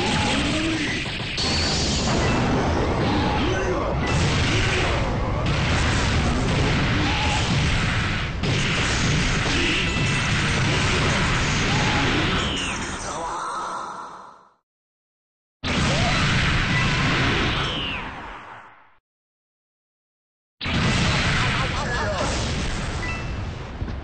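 Loud blasts and crackling electric bursts roar almost without a break.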